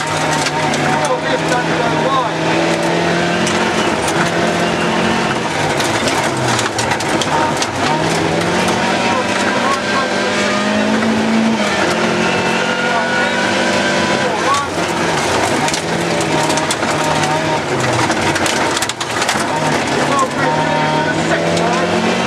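A rally car engine roars loudly, revving up and down through the gears.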